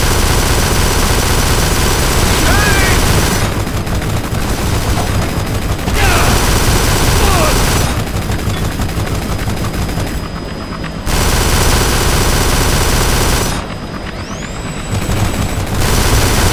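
A helicopter's rotor thumps steadily nearby.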